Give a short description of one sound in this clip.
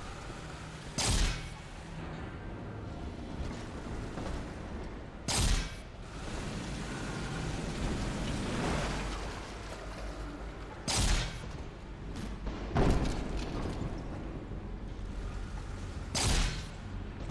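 A gun fires in short, loud bursts.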